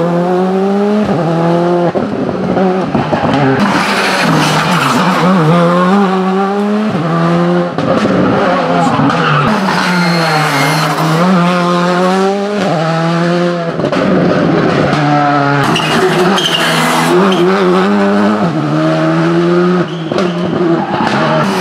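Rally car engines roar and rev hard as cars race past one after another.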